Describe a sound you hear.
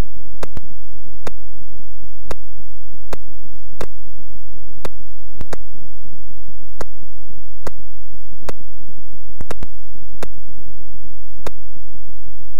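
Short sharp electronic clicks from a retro computer game sound at uneven intervals.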